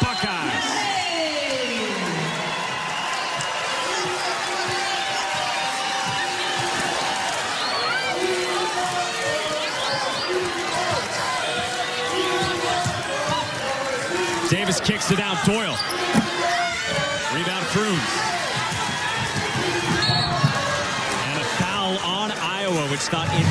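A basketball bounces on the court as a player dribbles.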